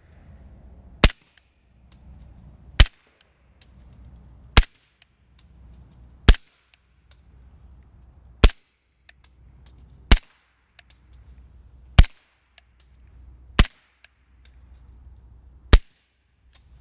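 A suppressed pistol fires single shots at a steady pace outdoors.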